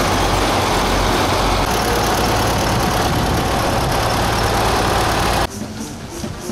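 Tractor engines rumble loudly as they drive past.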